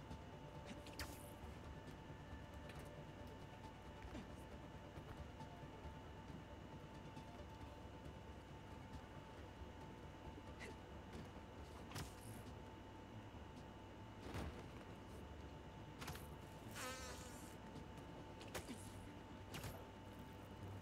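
Whooshing swings in a video game come and go.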